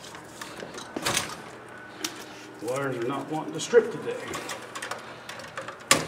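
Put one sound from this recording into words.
Wires are pushed into a plastic electrical box with light scrapes and clicks.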